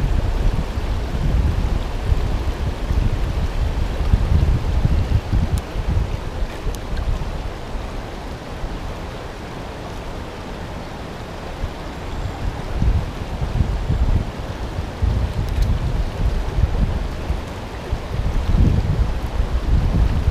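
Wind buffets outdoors in low gusts.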